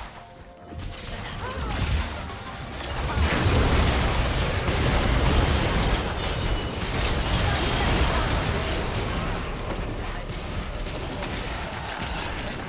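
Video game spell blasts and hits crackle and boom during a fight.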